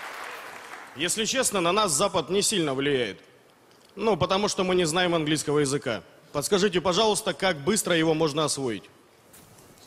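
A middle-aged man speaks calmly and slowly into a microphone over loudspeakers.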